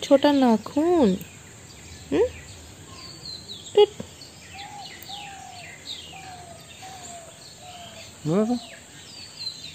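A baby squeals and coos close by.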